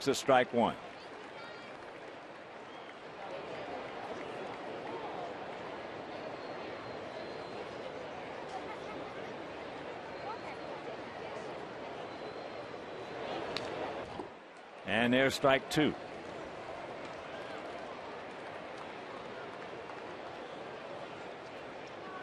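A crowd murmurs steadily in a large outdoor ballpark.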